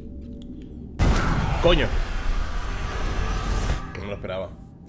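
A deep rumbling blast booms and roars.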